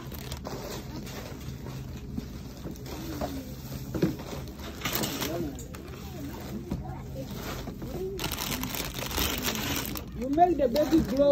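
A shopping cart rolls over a hard floor.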